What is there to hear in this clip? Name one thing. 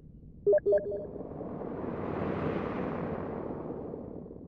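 An explosion booms and rumbles away.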